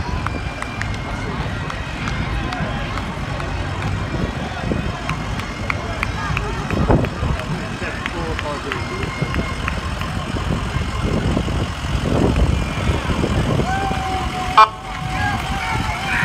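An ambulance engine rumbles as it rolls slowly past, close by.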